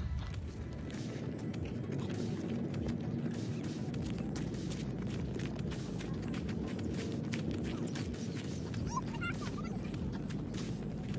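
Wind blows and rumbles across the microphone outdoors.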